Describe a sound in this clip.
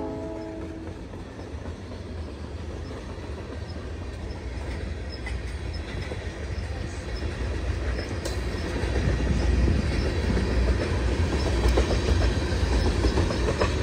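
Train wheels clatter rhythmically over the rails.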